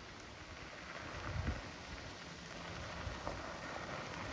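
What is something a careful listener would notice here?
Tyres of a bicycle crunch on gravel as the bicycle approaches.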